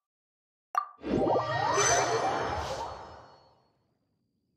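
A rising magical whoosh swells and fades.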